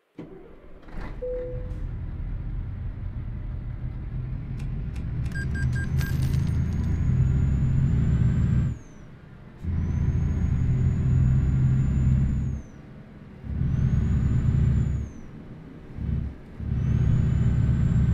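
A truck's diesel engine idles, then revs up and down as it pulls away and shifts gears.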